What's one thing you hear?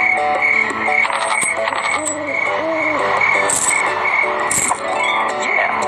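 Coins jingle and sparkle with bright chimes.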